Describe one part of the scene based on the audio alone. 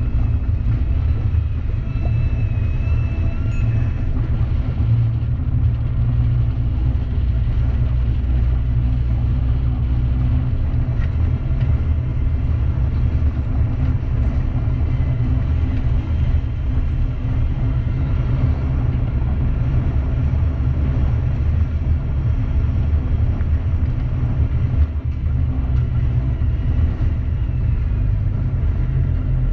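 An armoured vehicle's engine rumbles loudly and steadily as it drives over rough ground.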